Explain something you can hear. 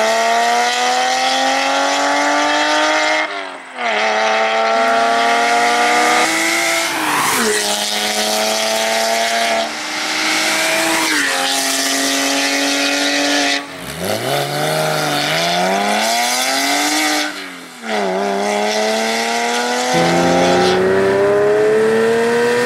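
A Porsche 911 flat-six with an aftermarket valved exhaust roars as it accelerates hard through the gears.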